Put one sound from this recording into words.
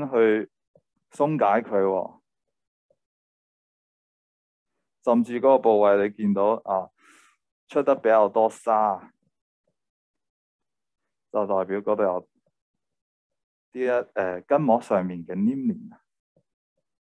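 A man speaks calmly and clearly through a headset microphone, in short phrases with pauses.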